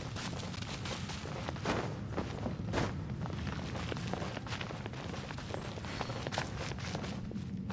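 Footsteps patter quickly on rock.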